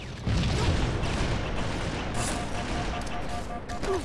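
A sniper rifle fires loud shots.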